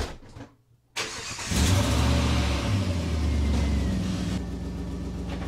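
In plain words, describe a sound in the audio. A car engine starts up with a roar.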